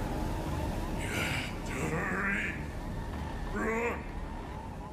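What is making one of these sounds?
A man speaks strained and breathless, close by.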